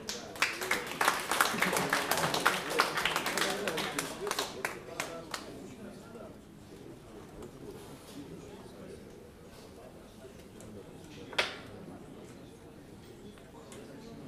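An electric guitar plays a jazz melody.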